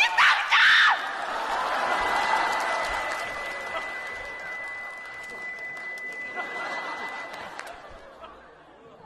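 A large audience laughs and applauds in a big hall.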